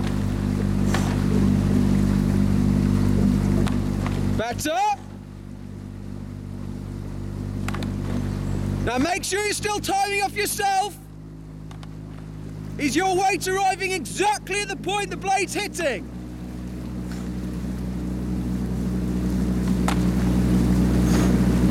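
Oars splash and pull through the water in a steady rhythm.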